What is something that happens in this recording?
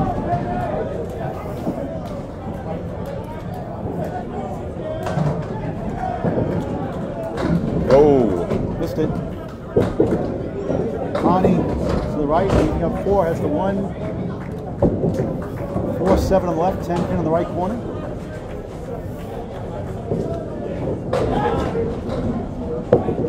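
Men chatter nearby in a noisy, echoing hall.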